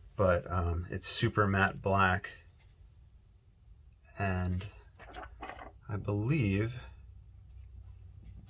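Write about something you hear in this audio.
A thin plastic sheet rustles softly as hands handle it.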